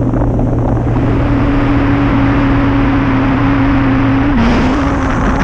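Wind roars and buffets loudly past in flight.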